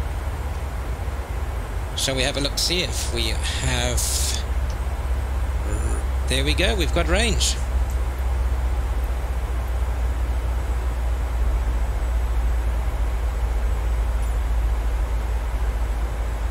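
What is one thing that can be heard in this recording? A jet engine drones steadily in flight.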